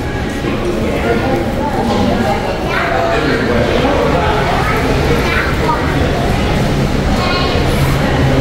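Many people talk at once, with voices echoing in a large hall.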